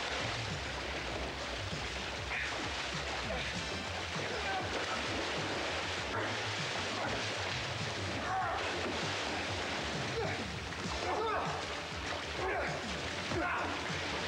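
Water splashes and churns heavily as bodies thrash in a pool.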